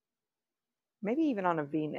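A middle-aged woman speaks calmly and close to a clip-on microphone.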